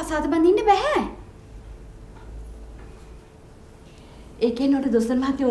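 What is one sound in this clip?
A middle-aged woman speaks with feeling nearby.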